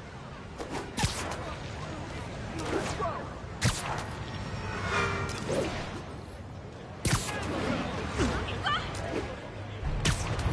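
Wind rushes past in swooping gusts during a fast swing.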